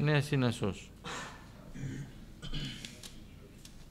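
A middle-aged man speaks calmly into a microphone, reading out.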